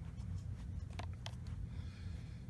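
A button on a plastic remote clicks as it is pressed.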